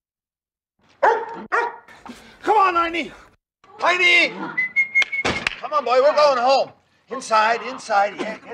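An elderly man shouts excitedly, close by.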